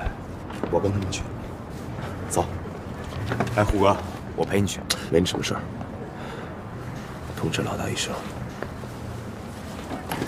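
A man answers firmly nearby.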